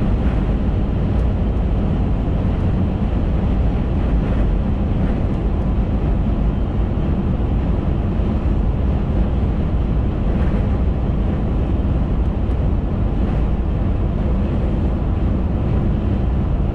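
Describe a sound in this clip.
Tyres roar steadily on the road surface.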